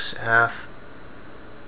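A man speaks briefly and quietly into a microphone.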